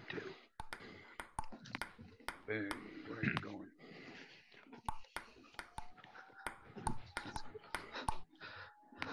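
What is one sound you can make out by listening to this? A ping-pong ball clicks sharply against paddles and a table.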